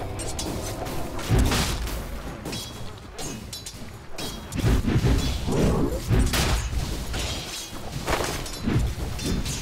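Game weapons clash with sharp hits.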